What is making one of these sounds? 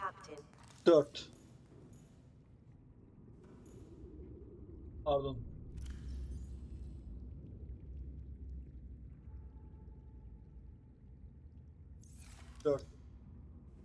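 Short electronic chirps sound as a menu opens and closes.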